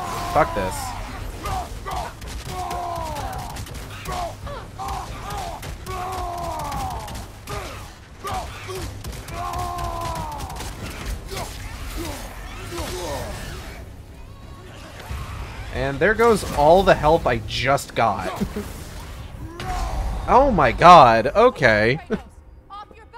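Heavy weapon blows strike and clash in a fight.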